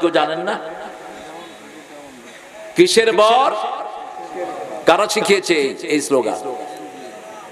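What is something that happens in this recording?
A man preaches loudly and passionately through a microphone and loudspeakers, with echo.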